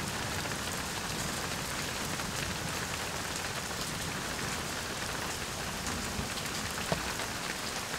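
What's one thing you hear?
Steady rain patters on the ground.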